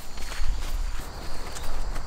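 Footsteps crunch softly on grass.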